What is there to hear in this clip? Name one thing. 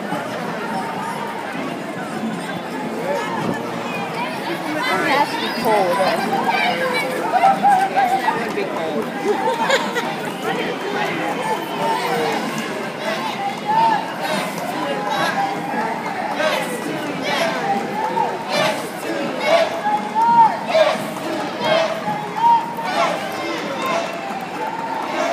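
A crowd of people chatters and calls out nearby outdoors.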